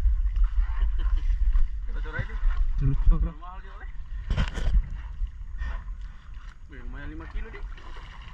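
Small waves lap against a boat hull.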